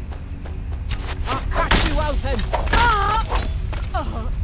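A sword strikes hard several times.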